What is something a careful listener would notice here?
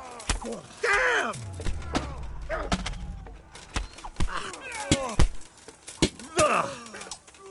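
Swords clash and clang against armour in a battle.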